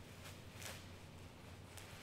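A knife cuts through something soft.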